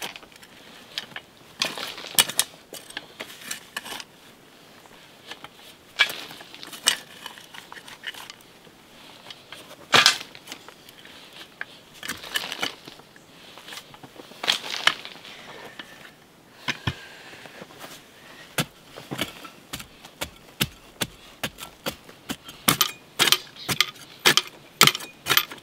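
A hoe digs and scrapes into packed soil.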